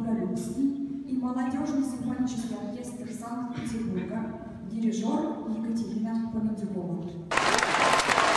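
A woman announces clearly through a microphone in a large hall.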